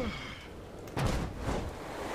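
A heavy body lands on a rooftop with a dull thud.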